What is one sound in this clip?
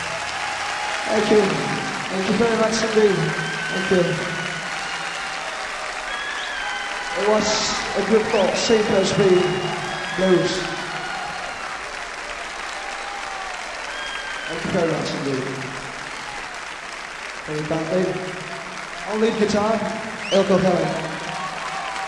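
A man sings with strain through a microphone.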